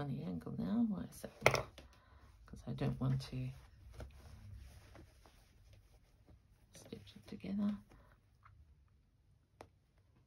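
Cloth rustles softly as hands fold and smooth it.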